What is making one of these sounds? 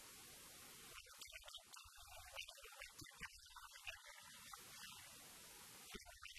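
Men call out to each other across an open pitch outdoors.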